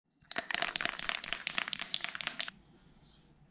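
A spray can rattles as it is shaken hard.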